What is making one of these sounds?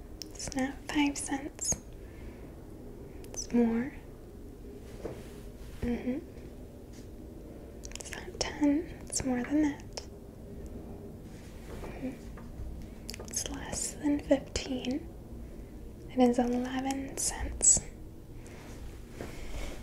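A young woman speaks softly and slowly into a close microphone, in short phrases with pauses.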